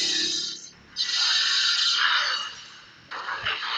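A blast explodes with a loud roar.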